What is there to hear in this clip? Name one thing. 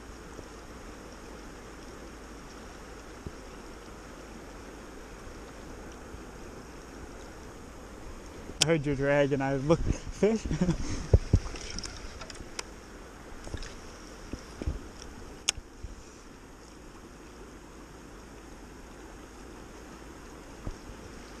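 A river rushes and gurgles steadily close by.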